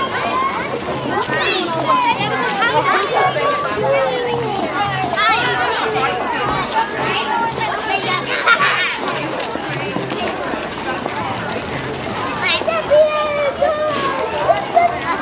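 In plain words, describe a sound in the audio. A crowd of adults and children chatters and calls out outdoors.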